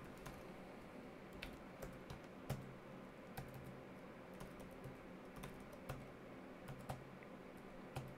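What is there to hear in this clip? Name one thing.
Keyboard keys click in quick taps.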